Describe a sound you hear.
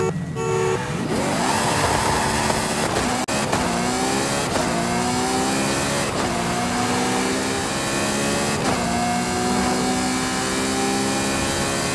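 A sports car engine roars, rising in pitch as the car speeds up through the gears.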